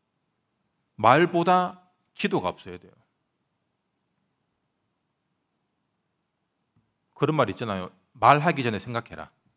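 A young man speaks calmly into a microphone, pausing between phrases.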